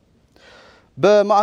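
A man reads out calmly into a microphone.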